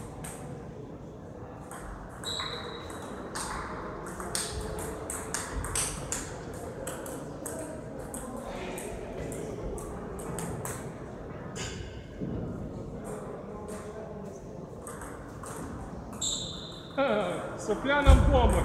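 A table tennis ball clicks back and forth off the table and paddles.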